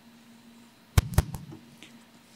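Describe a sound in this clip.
A book knocks and rustles against a lectern close to a microphone.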